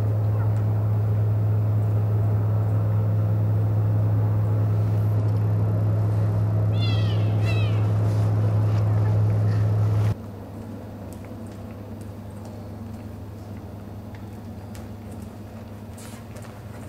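A horse's hooves thud softly on soft ground at a walk.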